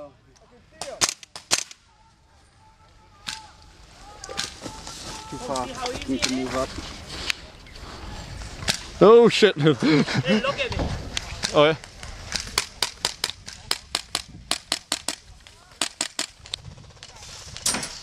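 A gun fires bursts of sharp, snapping shots outdoors.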